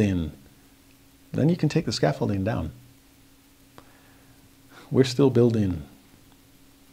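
A middle-aged man speaks calmly and expressively, close to a microphone, in short phrases with pauses.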